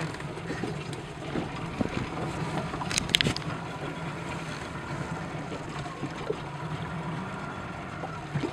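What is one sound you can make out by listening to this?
Wind blows steadily across open water.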